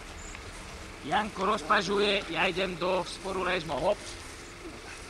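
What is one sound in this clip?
Young men talk and call out to each other outdoors.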